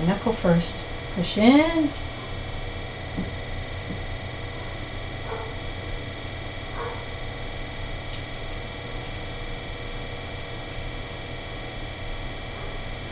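A potter's wheel hums steadily.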